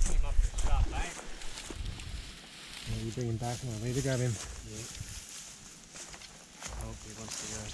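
A second man calls out from a short distance.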